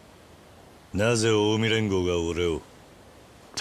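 A second man asks something in a low, calm voice.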